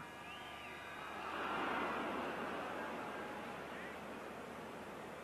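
A large stadium crowd roars loudly, then fades.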